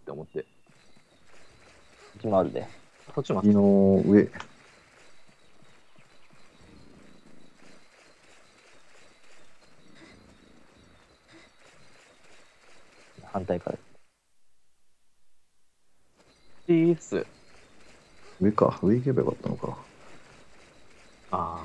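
Footsteps run quickly over grass and ground.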